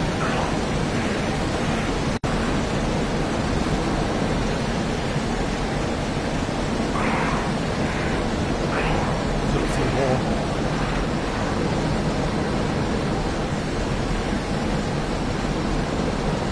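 A fighter jet's engines roar steadily in flight, heard from inside the cockpit.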